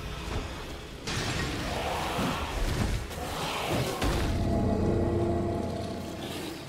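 Magical blasts burst and roar.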